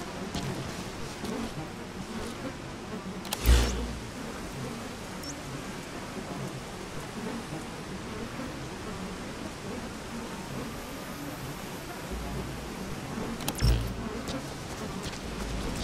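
Footsteps crunch softly through dry grass.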